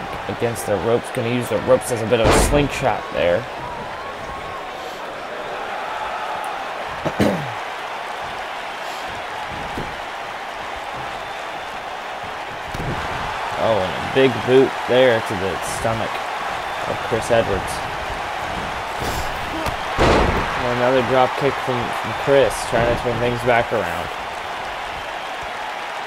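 A large crowd cheers and murmurs steadily in an echoing arena.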